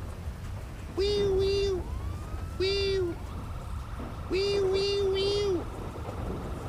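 A police siren gives several short, loud blasts.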